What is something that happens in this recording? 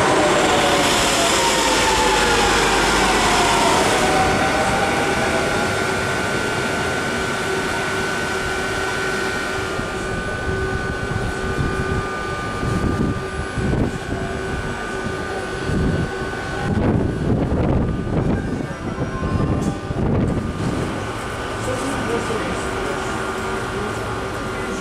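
A train rolls slowly along the rails.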